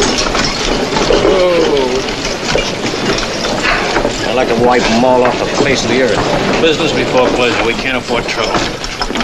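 Two men talk with each other close by.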